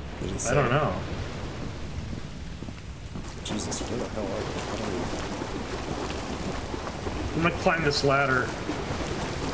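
A man speaks briefly and calmly into a close microphone.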